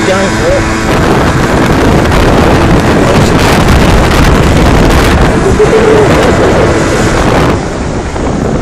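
Wind buffets the microphone of a moving moped.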